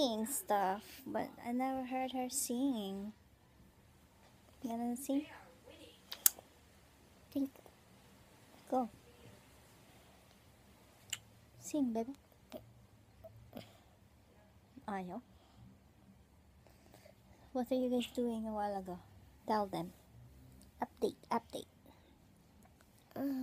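A young girl talks close by, in bursts, with a playful, high voice.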